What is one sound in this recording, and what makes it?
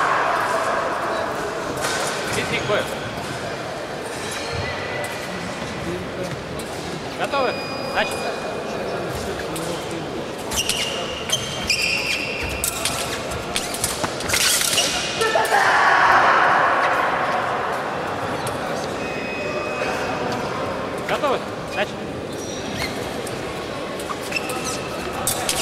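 Fencers' shoes stamp and squeak on a wooden floor.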